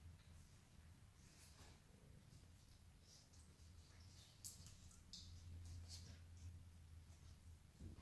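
Dog paws scrape and patter on a tiled floor.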